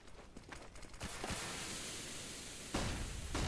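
A flash grenade goes off with a sharp bang.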